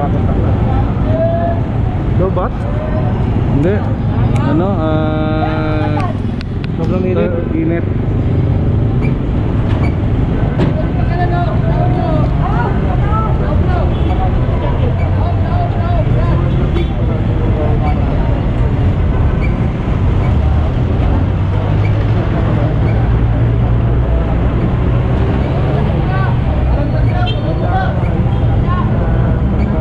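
People talk in a busy street crowd.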